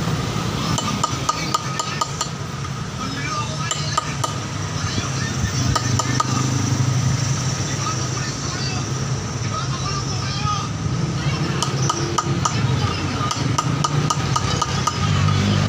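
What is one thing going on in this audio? A hand-held block scrapes along the edge of a granite slab.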